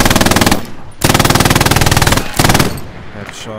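A heavy tank gun fires with a loud, roaring blast.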